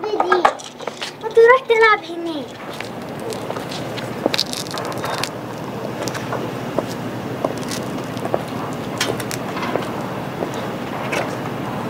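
A woman's high heels click on pavement at an even pace.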